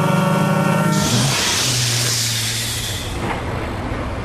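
A powerboat roars across the water.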